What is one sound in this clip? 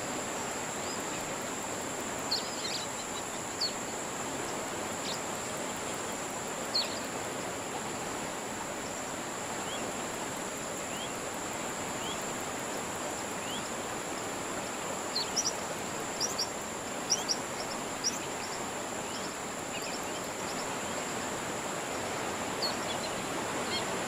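Water laps gently and steadily.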